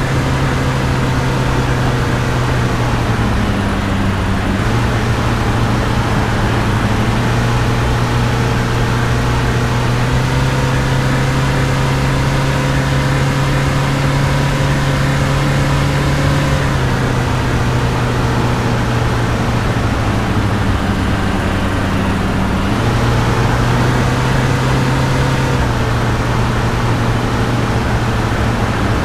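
A truck engine hums steadily, its pitch shifting with gear changes.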